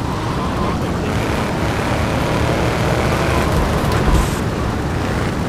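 A car engine roars steadily as the car speeds along.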